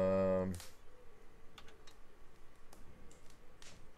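A short game click sounds.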